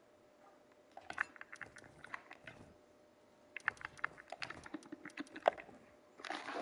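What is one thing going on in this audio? Game items click softly as they are moved between slots.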